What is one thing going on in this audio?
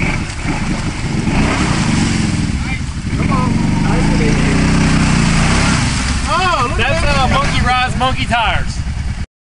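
An all-terrain vehicle engine revs loudly and roars.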